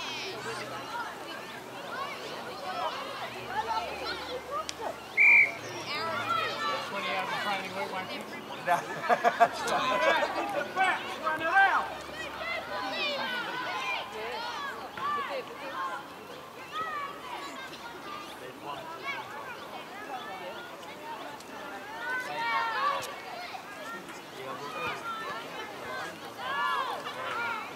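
Children shout and call out across an open field.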